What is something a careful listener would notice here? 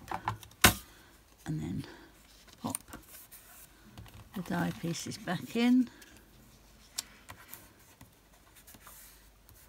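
Paper rustles as hands press and smooth it.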